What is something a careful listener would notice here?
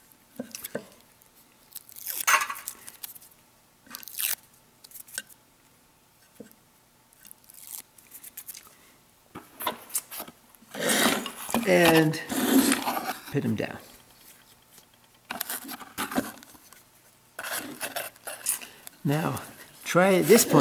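Small metal parts click and rattle as they are handled.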